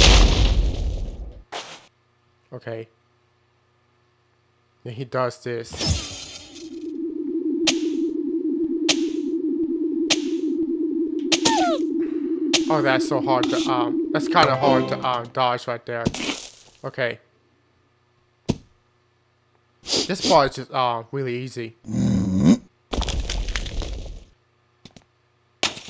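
Cartoonish video game sound effects blip, whoosh and chirp.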